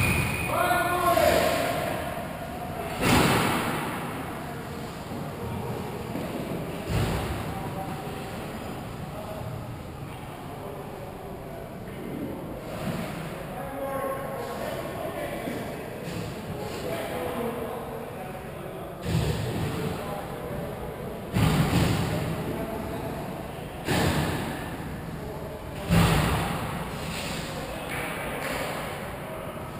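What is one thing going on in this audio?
Ice skates scrape and hiss across the ice in a large echoing rink.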